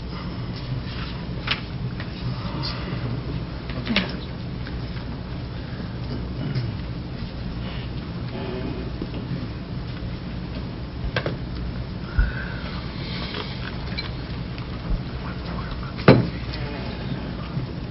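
Faint murmurs and shuffles come from a seated audience.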